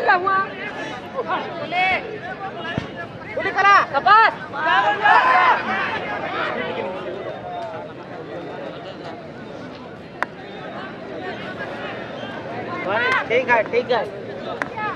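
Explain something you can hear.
A large outdoor crowd of men cheers and shouts excitedly.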